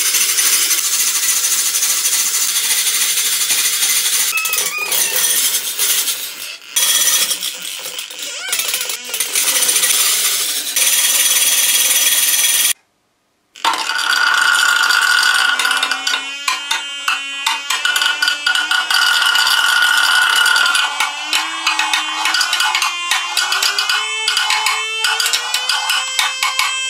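A high electric buzz whines steadily from a small loudspeaker, then slowly rises in pitch.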